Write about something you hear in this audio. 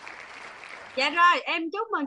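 A woman speaks excitedly through a microphone.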